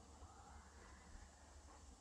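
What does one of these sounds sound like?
A man whispers quietly and close by.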